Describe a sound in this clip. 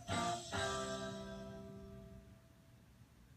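A chime rings out from a television loudspeaker and slowly fades.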